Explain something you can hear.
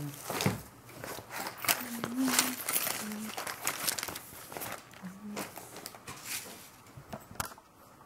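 A fabric bag rustles as it is handled.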